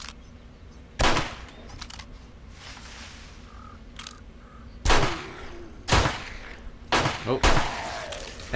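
Gunshots ring out one at a time, sharp and loud.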